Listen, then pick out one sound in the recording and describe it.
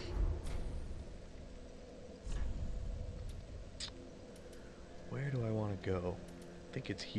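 Short menu clicks sound as choices are switched.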